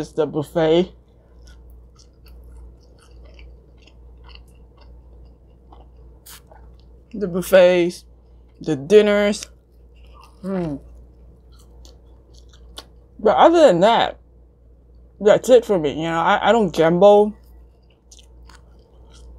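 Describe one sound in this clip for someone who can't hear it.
A young woman chews food close to a microphone.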